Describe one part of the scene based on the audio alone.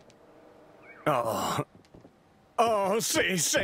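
A young man exclaims with excitement and laughs.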